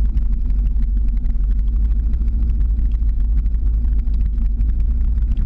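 Skateboard wheels roll and rumble steadily on pavement.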